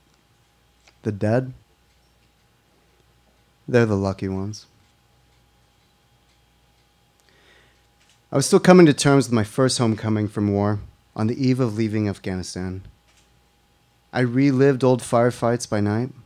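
A young man reads aloud calmly into a microphone, heard over a loudspeaker in a hall.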